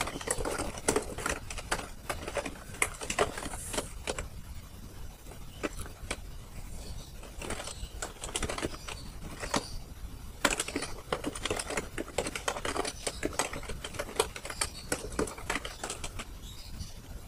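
Keys clatter quickly on a keyboard.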